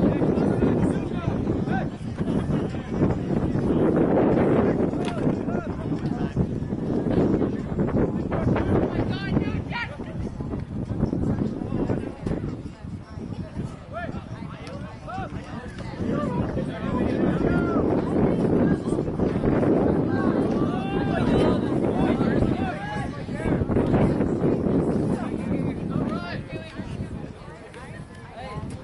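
A crowd of spectators chatters and cheers nearby.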